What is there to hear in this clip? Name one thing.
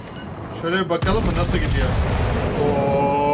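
Heavy naval guns boom.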